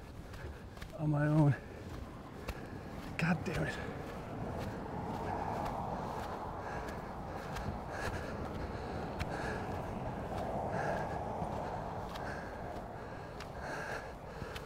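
Footsteps crunch steadily on dry sand and grass.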